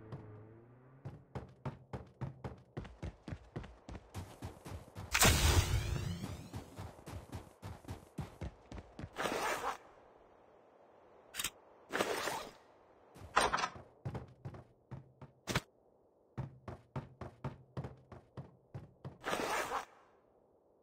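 Quick footsteps thud on wooden floors and crunch on snow.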